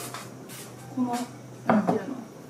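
Dishes clink as they are set down on a wooden table.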